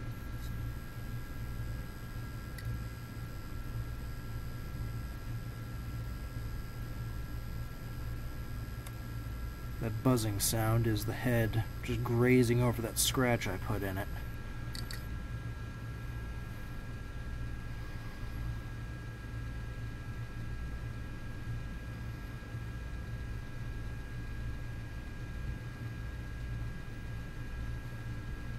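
A hard drive spins with a steady whir and a faint high whine.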